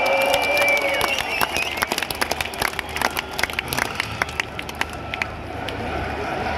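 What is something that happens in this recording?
A large crowd claps along in rhythm.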